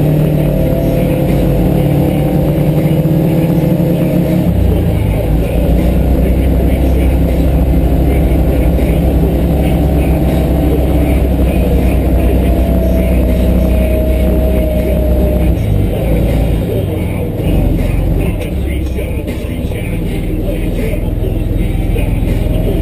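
An engine rumbles steadily close by.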